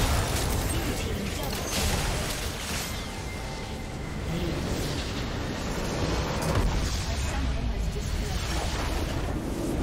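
Magic spells blast and crackle in a hectic fight.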